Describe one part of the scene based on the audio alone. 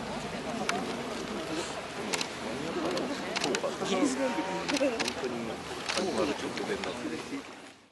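A crowd of people chatters outdoors nearby.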